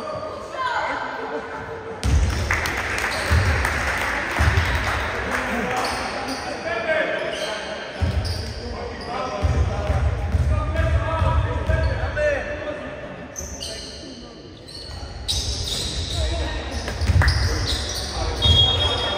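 A basketball bounces on a wooden court in an echoing hall.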